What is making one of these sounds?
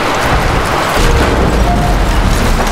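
Wooden beams crash and rumble as a structure collapses.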